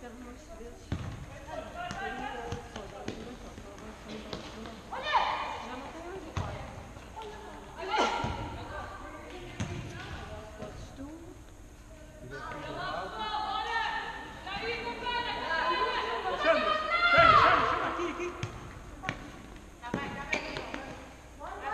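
A ball thuds off a player's foot.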